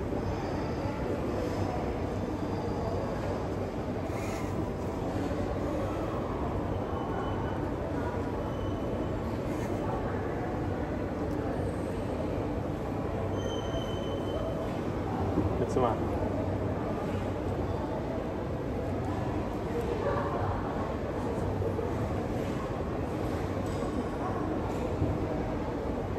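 A young woman talks quietly nearby.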